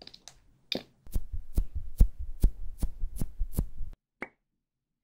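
A lip gloss wand clicks and squishes in its tube close up.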